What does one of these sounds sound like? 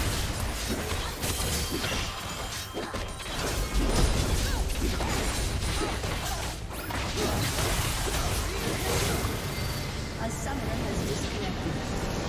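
Video game spells and weapon strikes crackle and clash rapidly.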